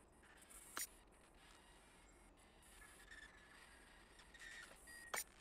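A game menu gives short electronic clicks as a selection is made.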